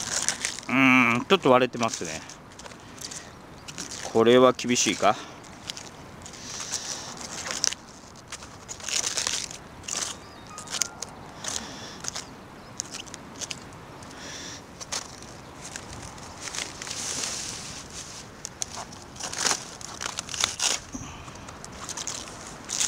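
Lettuce leaves rustle and crackle as they are handled.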